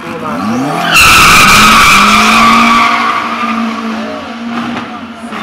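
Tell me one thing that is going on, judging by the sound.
A second car engine roars loudly as a car launches and speeds away.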